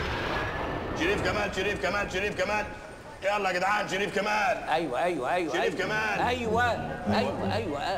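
A middle-aged man shouts loudly nearby.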